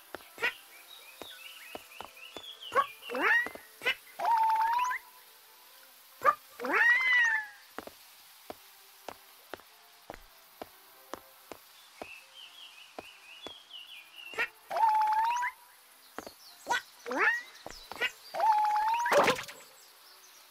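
Small feet tap quickly while climbing.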